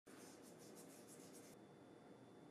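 Salt patters lightly onto a plate.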